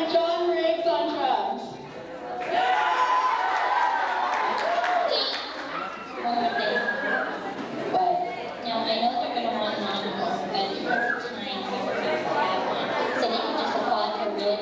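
A woman speaks with animation through a microphone in an echoing hall.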